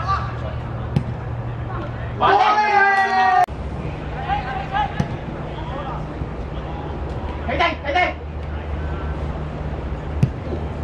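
A football thumps as it is kicked.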